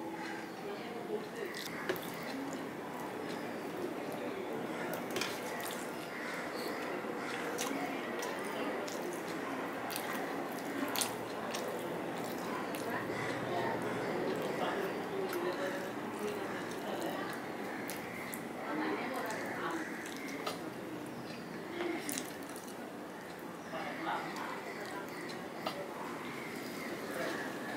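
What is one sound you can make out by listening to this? A man eats noisily with his hands, smacking and chewing close by.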